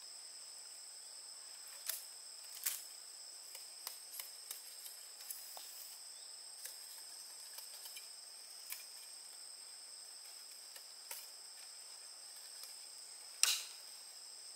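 A machete knocks and taps against bamboo poles.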